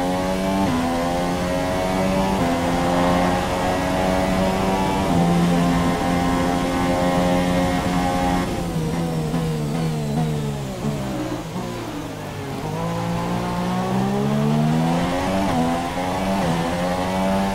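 A racing car engine screams at high revs, shifting up through the gears, then drops low while braking and revs back up.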